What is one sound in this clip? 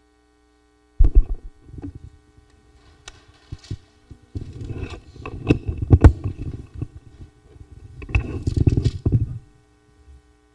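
Microphone handling knocks and rustles sound close up.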